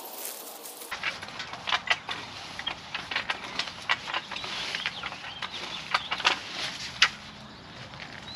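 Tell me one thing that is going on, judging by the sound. A rake scratches through dry leaves and soil.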